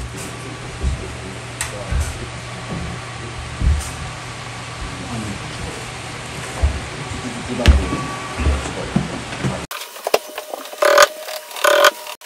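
Wooden cabinet panels knock and thump as they are carried.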